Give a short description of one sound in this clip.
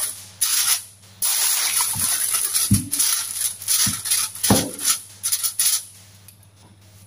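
Aluminium foil crinkles and rustles as hands fold it.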